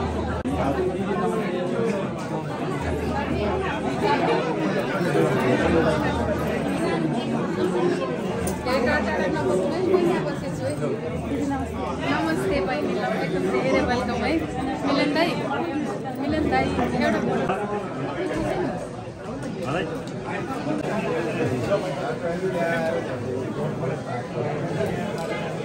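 A crowd of men and women chatter and greet each other nearby.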